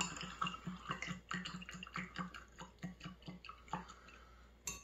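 A spoon clinks rhythmically against a glass mug while stirring.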